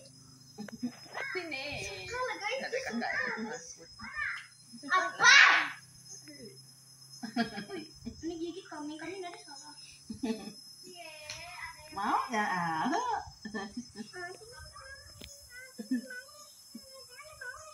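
An elderly woman laughs close by.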